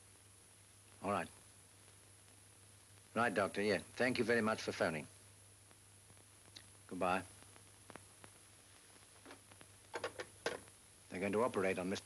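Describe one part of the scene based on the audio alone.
A man speaks into a telephone in a calm, low voice.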